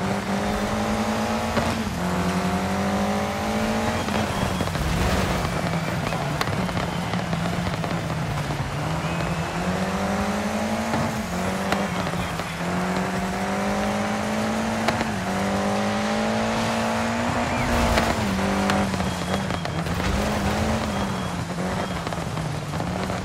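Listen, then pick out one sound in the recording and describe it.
Tyres skid and crunch over loose gravel.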